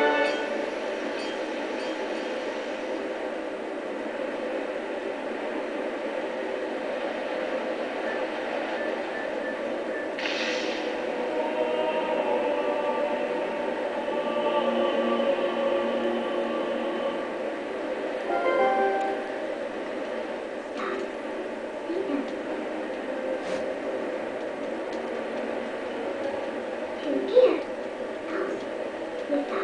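Orchestral game music plays steadily through a television speaker.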